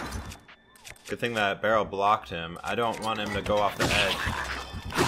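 A shattering chime rings out as a weapon breaks.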